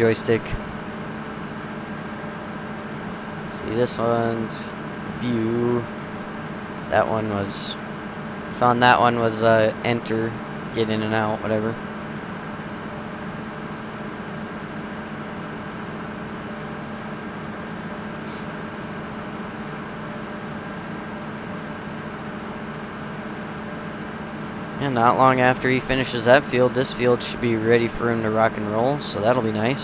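A combine harvester engine drones steadily.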